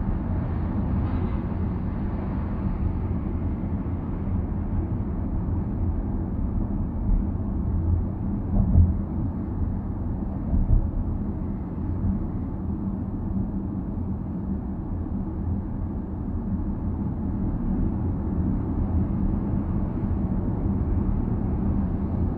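A car's engine hums steadily while driving.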